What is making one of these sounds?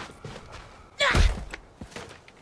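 A heavy thud lands on the ground.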